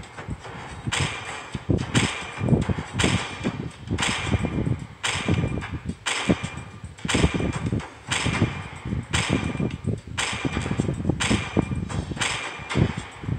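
A game countdown ticks once every second.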